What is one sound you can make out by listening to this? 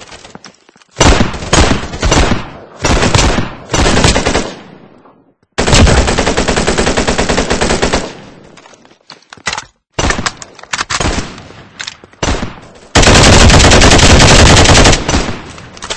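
Gunshots fire in loud, rapid bursts.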